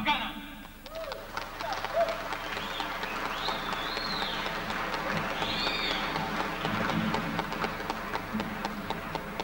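Acoustic guitars and a balalaika play a lively tune.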